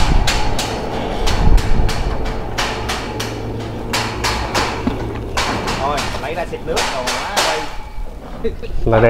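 A sawmill machine hums steadily nearby.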